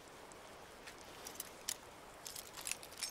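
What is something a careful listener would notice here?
Metal clicks and scrapes as a lock is picked.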